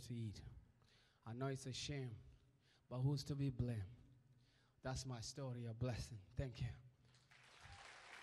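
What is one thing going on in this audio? A young man sings with passion into a microphone.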